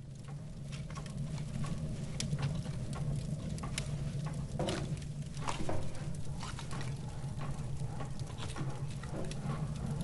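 A wood fire crackles and pops in a stove.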